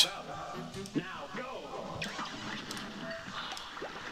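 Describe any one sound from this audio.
Small cartoon shots fire in quick bursts.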